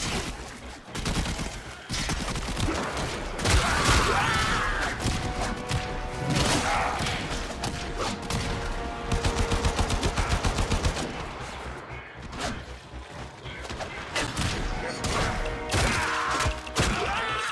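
Metal blades clash and swish in a fast fight.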